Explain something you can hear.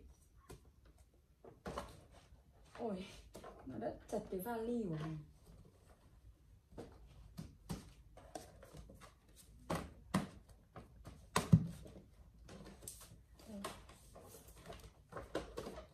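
Paper and cardboard rustle and tap as items are handled.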